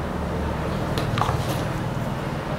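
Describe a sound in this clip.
Small plastic parts click together as hands handle them.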